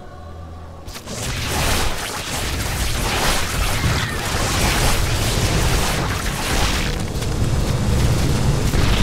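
Explosions rumble and crackle throughout a battle.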